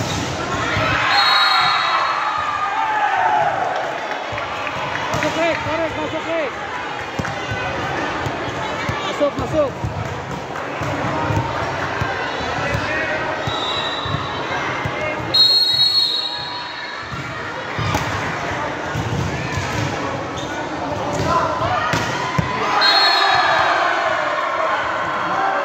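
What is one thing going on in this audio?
A crowd cheers and chatters loudly in a large echoing hall.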